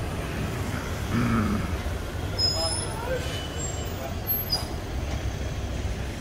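A van engine hums as it drives slowly past.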